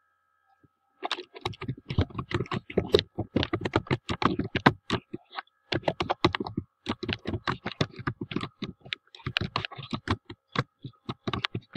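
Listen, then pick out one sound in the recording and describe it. Keys clatter quickly on a computer keyboard.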